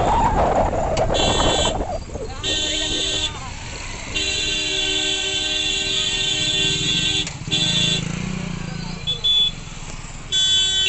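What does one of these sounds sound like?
A motorcycle horn honks several times.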